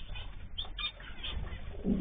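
Bird wings flutter briefly.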